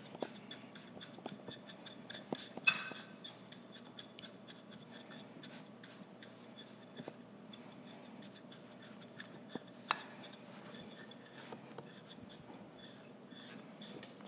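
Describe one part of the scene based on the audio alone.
A metal cup presses and scrapes softly against crumbs in a glass dish.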